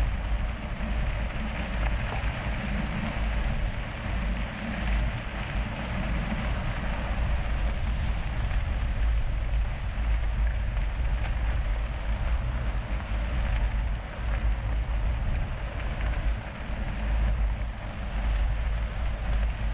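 Wind rushes loudly across a microphone.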